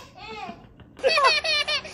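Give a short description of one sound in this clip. Babies squeal and laugh.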